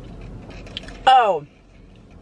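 A young woman exclaims with delight.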